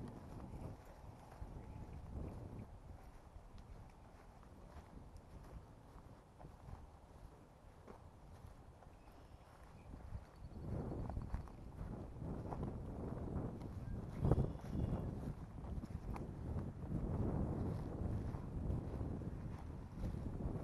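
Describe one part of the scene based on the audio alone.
Footsteps swish through grass outdoors.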